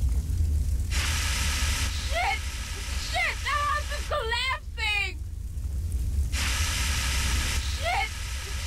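A fire extinguisher sprays with a loud hiss.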